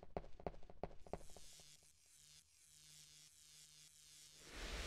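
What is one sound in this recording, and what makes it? Electricity crackles and fizzes.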